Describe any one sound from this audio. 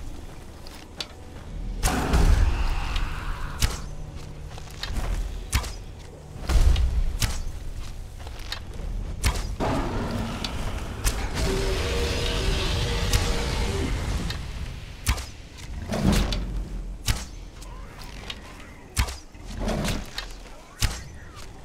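Arrows twang from a bow in quick succession.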